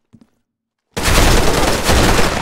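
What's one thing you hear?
Rapid gunfire rattles loudly at close range.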